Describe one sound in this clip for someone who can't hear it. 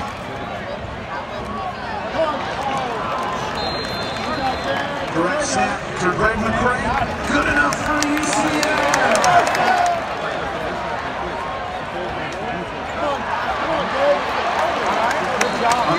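A large stadium crowd cheers and roars, swelling louder for a while before easing off.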